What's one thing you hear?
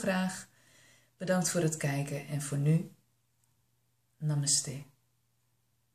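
A young woman speaks calmly and warmly close to a microphone.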